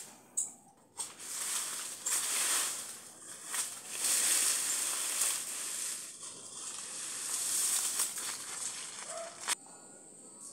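Dry leaves rustle and crunch as a man gathers them up by hand.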